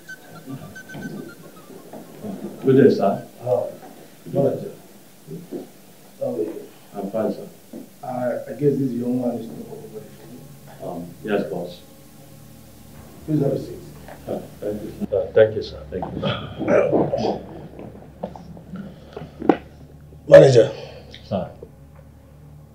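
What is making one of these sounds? An adult man speaks with animation, close by.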